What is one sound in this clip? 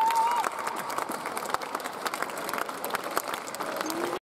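A crowd applauds and cheers in a large echoing hall.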